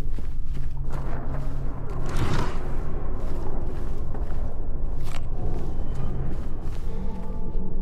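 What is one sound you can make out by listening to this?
Footsteps fall on a hard floor.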